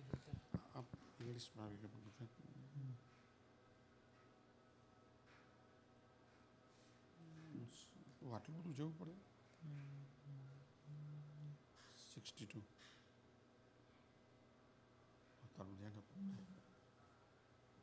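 An elderly man speaks quietly nearby.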